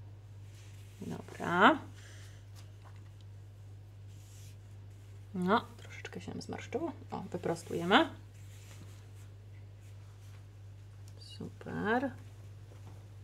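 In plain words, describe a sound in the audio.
A woman speaks gently in short phrases nearby.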